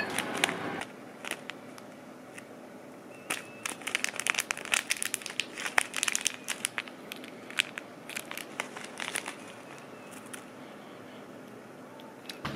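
A plastic packet crinkles and rustles in someone's hands.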